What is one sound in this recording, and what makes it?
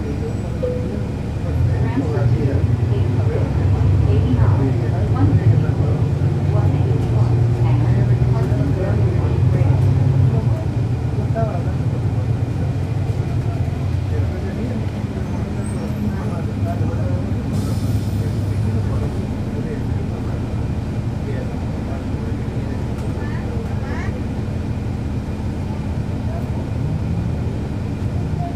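A bus engine idles with a low, steady rumble close by.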